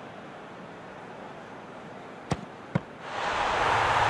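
A crowd murmurs quietly in a stadium.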